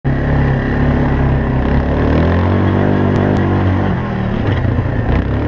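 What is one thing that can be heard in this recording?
A quad bike engine revs loudly, rising and falling in pitch.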